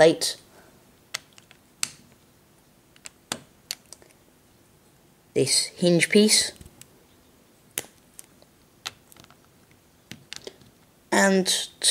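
Small plastic bricks click and clack together.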